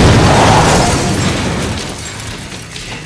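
A car crashes and scrapes along the ground.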